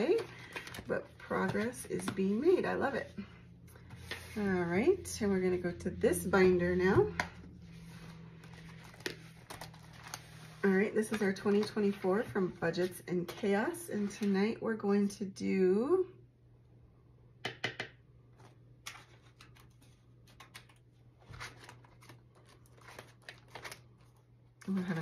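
Plastic binder pages rustle and crinkle as they are turned.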